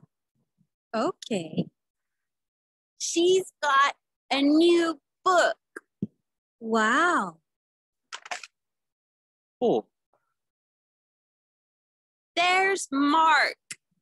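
A woman speaks in short, lively phrases through an online call.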